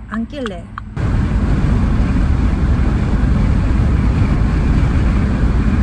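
A car's engine and tyres rumble on a road as it drives.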